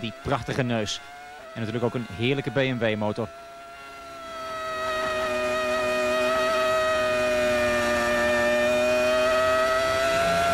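A racing car engine screams at high revs, growing louder.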